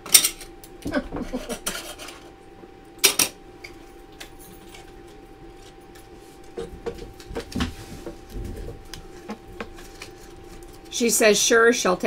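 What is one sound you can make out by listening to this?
Small objects click and rattle as they are handled.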